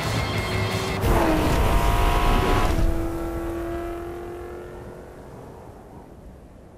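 A sports car roars loudly as it speeds past, then fades away.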